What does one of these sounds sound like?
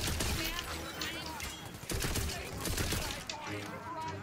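A gun fires rapid bursts of energy shots.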